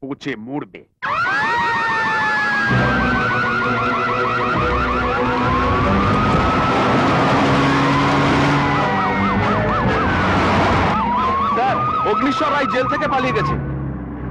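A siren wails loudly, rising and falling.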